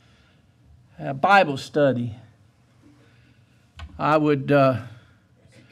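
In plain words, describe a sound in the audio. An elderly man speaks with emotion into a microphone.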